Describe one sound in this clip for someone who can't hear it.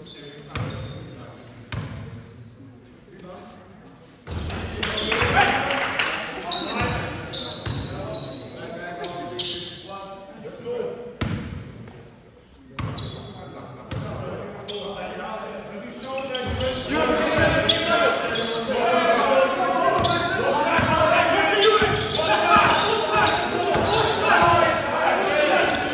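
A basketball bounces in an echoing hall.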